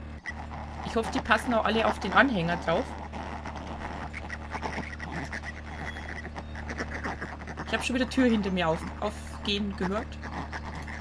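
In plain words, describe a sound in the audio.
Pigs grunt and squeal close by.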